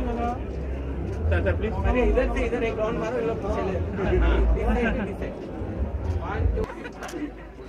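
A crowd of people chatters loudly close by.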